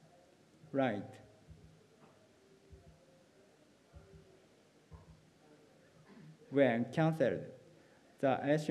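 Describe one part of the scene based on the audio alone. A young speaker talks calmly into a microphone, with long pauses.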